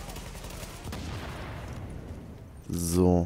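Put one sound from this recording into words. An explosion roars and slowly fades.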